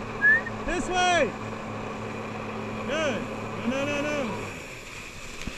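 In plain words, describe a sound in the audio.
A jet ski engine hums steadily close by, then cuts out.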